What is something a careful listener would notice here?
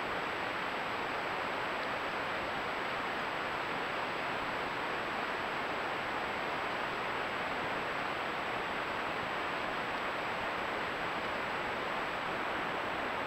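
A stream flows steadily nearby.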